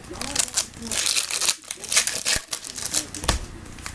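Stiff cards shuffle and flick against each other.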